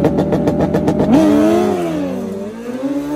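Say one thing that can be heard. A motorcycle engine revs hard and roars off into the distance.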